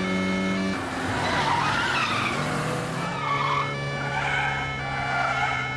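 Car tyres squeal on asphalt as a car corners hard.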